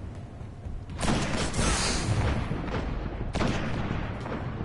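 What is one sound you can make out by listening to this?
Gunfire and blasts crackle in a loud burst.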